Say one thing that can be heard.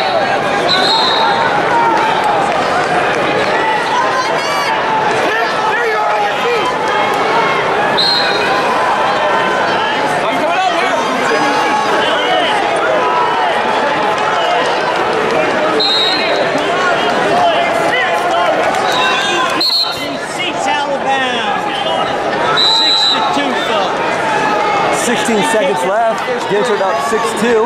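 A large crowd murmurs and shouts in a large echoing arena.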